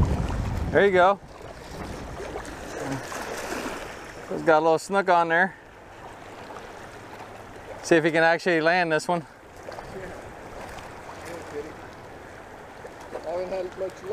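Choppy water laps around a wader's legs.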